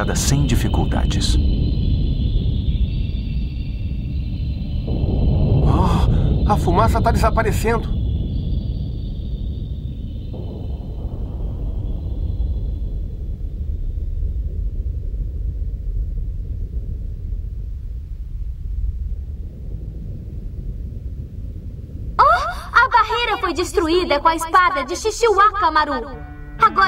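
Strong wind roars steadily.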